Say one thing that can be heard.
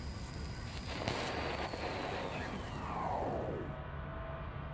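A bank of monitors powers down with a falling electric whine.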